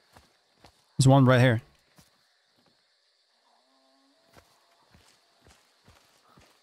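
Footsteps crunch slowly over leafy forest ground.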